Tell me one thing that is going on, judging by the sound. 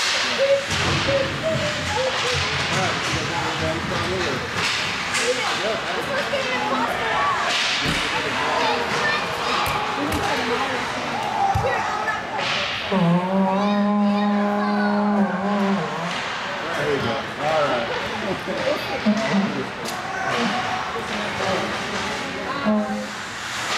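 Young men shout to each other across a large echoing rink.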